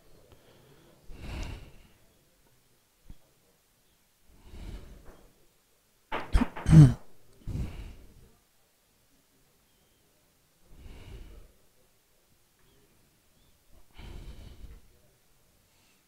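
Men talk briefly nearby.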